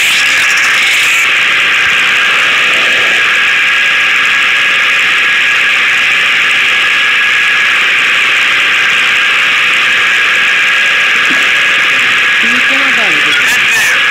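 A plane's propeller engines drone steadily.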